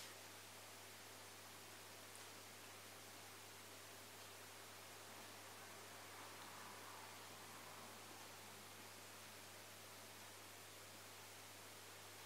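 A woman breathes out slowly and softly through pursed lips, close by.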